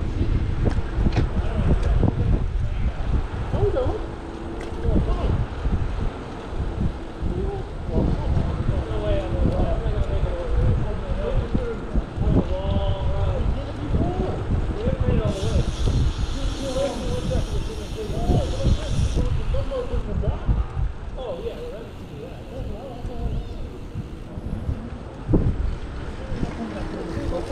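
Wind buffets loudly as a bicycle rides outdoors.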